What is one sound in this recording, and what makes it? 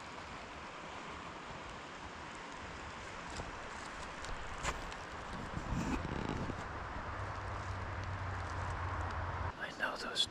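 A steady wind hisses through the trees outdoors.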